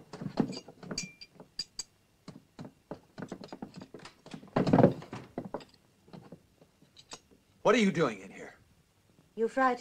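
Small objects rustle and clink as a girl rummages on a wooden floor.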